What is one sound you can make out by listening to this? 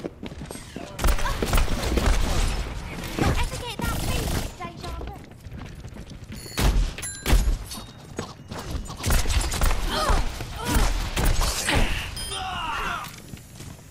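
Pistols fire in rapid bursts of gunshots.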